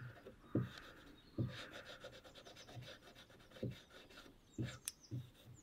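Small metal tool parts click and scrape.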